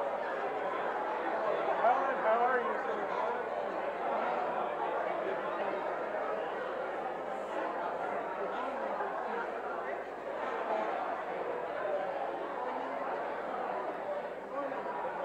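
A crowd of men and women chatter and greet each other in a large echoing hall.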